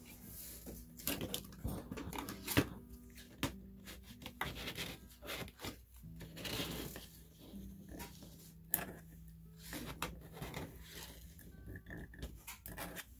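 Small objects clatter and tap on a hard surface as hands handle them.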